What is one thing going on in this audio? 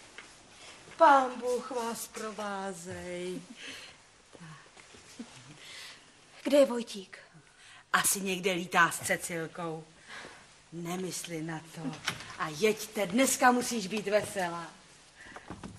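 An older woman talks with animation nearby.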